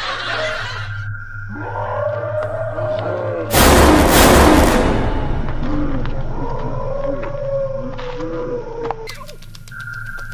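Young men scream in fright close by.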